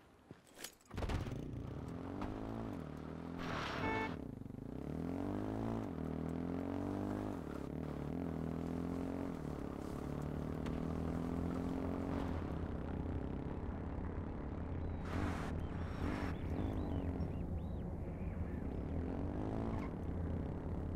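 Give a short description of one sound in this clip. A small engine starts and roars, revving up and down as a quad bike drives.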